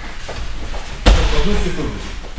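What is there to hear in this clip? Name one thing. A body thuds onto a mat.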